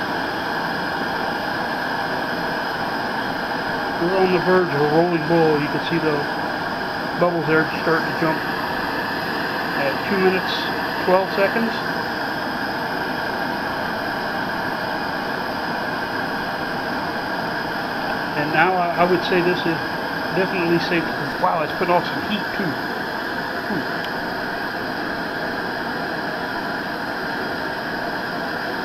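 Water in a pot hisses steadily as it heats.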